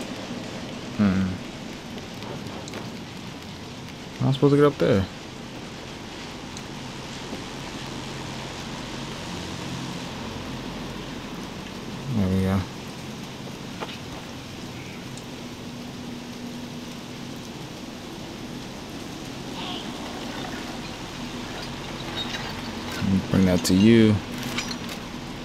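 A young man talks in short bursts, close to a microphone.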